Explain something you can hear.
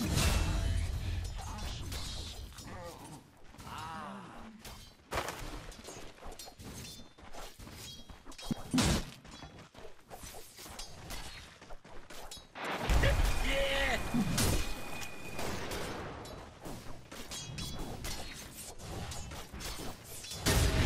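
Game spell effects clash and crackle throughout a fight.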